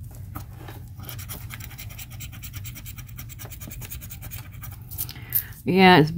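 A plastic edge scrapes rapidly across a card.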